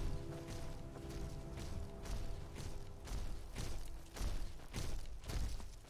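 Footsteps crunch on dry grass at a steady walking pace.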